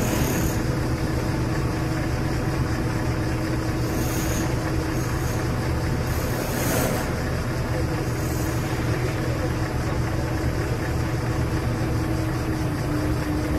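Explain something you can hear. A truck-mounted crane engine rumbles steadily close by.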